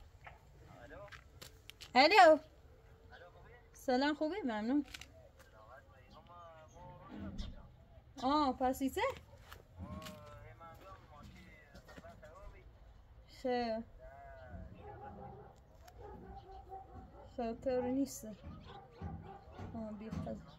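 A woman talks close by on a phone with animation.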